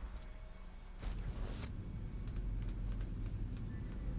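Plastic pieces clatter and snap together.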